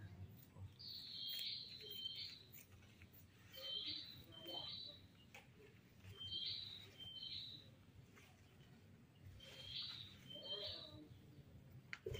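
A small monkey squeaks in short high pairs.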